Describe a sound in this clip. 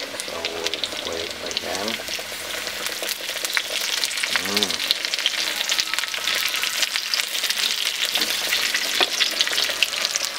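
A wooden spatula scrapes against a frying pan.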